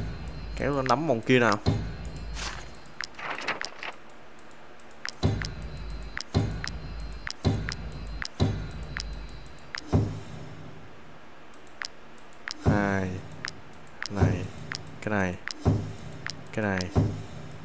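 Short soft clicks sound as menu buttons are pressed.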